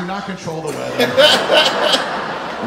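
Men laugh heartily close by.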